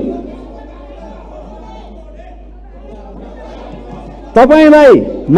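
Many voices murmur in a large hall.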